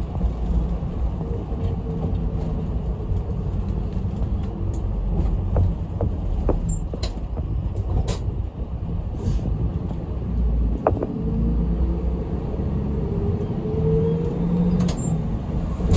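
The bus rattles and creaks over the road.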